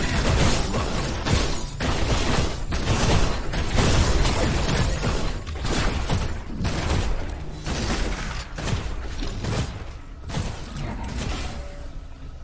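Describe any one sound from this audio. A man speaks through a headset microphone.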